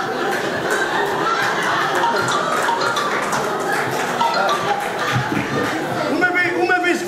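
A band plays guitars and brass.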